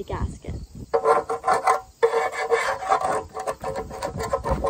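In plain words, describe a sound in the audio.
A wire brush scrapes harshly against metal.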